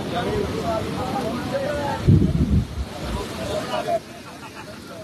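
A crowd of young men chatters and calls out outdoors.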